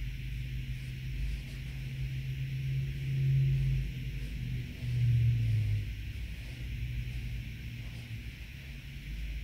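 A brush strokes softly across a canvas.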